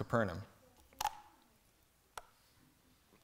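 A bottle is set down on a wooden surface.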